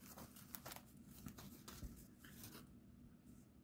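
A sheet of paper rustles and crinkles in someone's hands.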